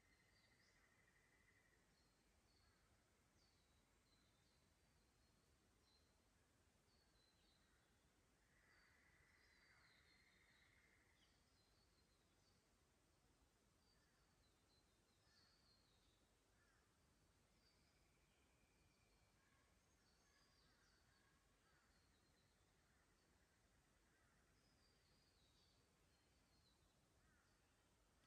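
A shallow creek trickles softly over stones.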